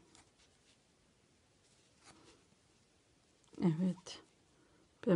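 Yarn rustles softly as a hook pulls it through stitches.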